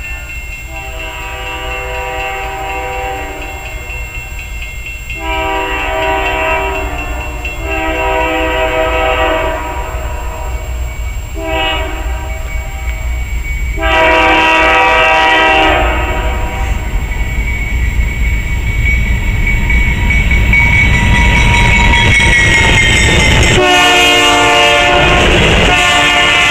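A train horn blows in long, loud blasts nearby.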